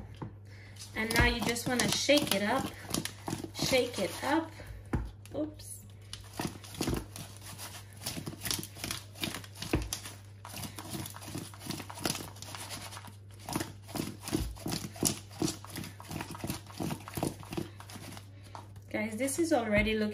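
Food tumbles and knocks in a wooden bowl as it is tossed.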